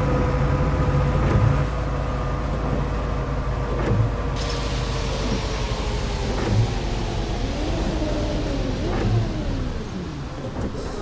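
A bus engine hums and winds down as the bus slows to a stop.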